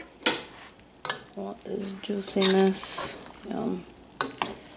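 A spoon stirs and scrapes food in a metal pot.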